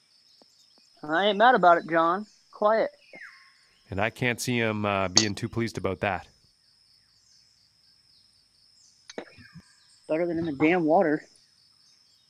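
A man talks casually into a microphone, in short bursts.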